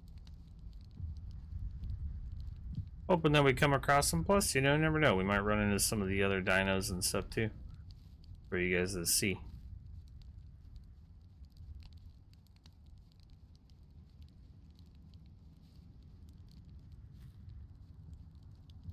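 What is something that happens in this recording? A torch flame crackles and hisses.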